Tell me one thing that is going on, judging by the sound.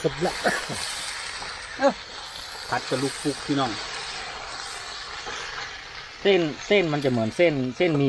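A metal spatula scrapes and stirs food in a pan.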